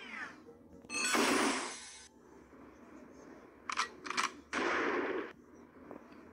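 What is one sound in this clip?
Electronic slot machine chimes and jingles play in short bursts.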